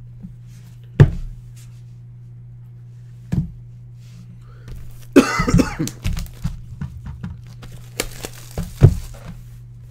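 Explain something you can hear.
A cardboard box knocks against a table.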